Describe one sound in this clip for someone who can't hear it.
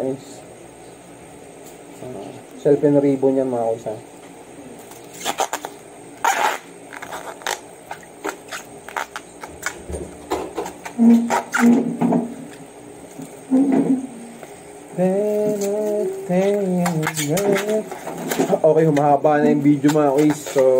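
A plastic bag crinkles and rustles in hands.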